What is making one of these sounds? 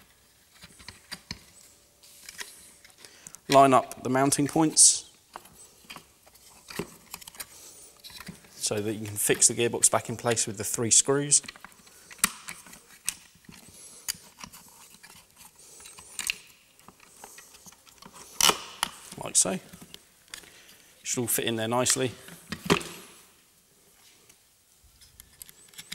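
Plastic parts click and tap as hands handle them.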